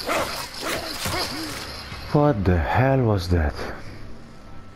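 Bodies scuffle and thrash through rustling brush.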